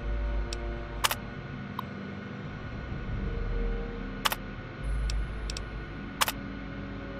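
A computer terminal clicks as options are chosen.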